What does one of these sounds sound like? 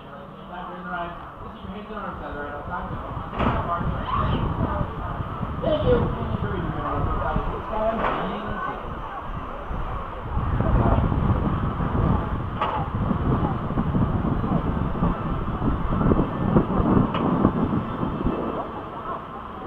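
Wind roars loudly past a moving ride.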